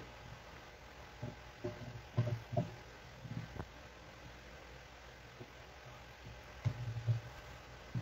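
Grated carrot rustles as a hand pushes it aside.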